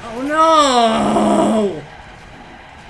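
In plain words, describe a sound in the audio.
A loud blast bursts and roars.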